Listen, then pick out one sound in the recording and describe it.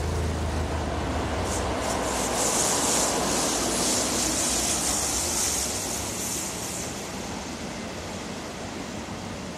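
A passenger train rumbles past close by on the tracks.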